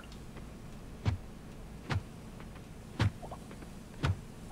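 An axe chops at wood with sharp knocks.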